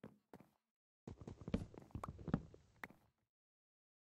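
Wooden blocks crack and break.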